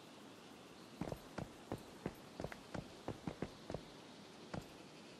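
Footsteps thud quickly on grass and ground.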